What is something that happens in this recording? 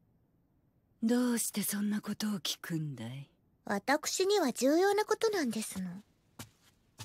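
A woman answers in a low, calm voice.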